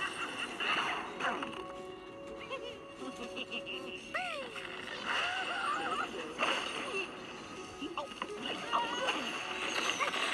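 Game sound effects of crashing, tumbling blocks play from a small speaker.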